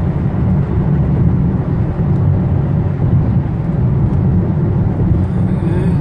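Windscreen wipers sweep and thump across the glass.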